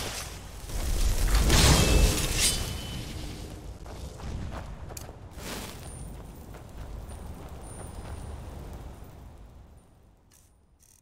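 A magic spell crackles and roars loudly, then fades.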